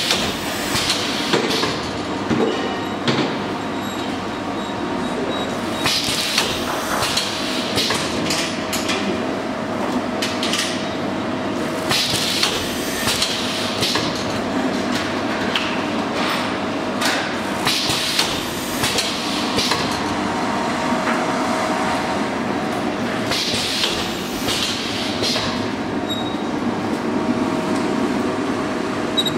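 A packaging machine hums and whirs steadily.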